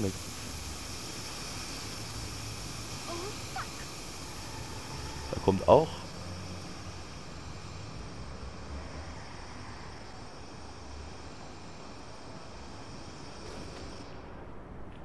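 Steam hisses steadily from a pipe.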